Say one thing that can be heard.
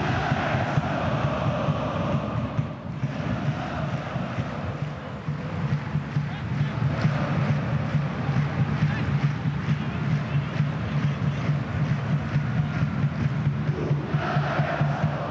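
A large stadium crowd chants and sings steadily.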